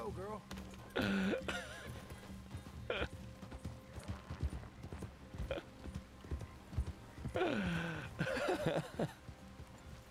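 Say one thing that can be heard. A young man talks and laughs with animation, close to a microphone.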